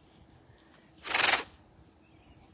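A tiger hisses sharply at close range.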